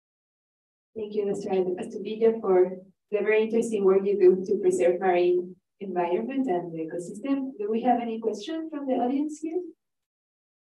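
A presenter speaks calmly through a microphone on an online call.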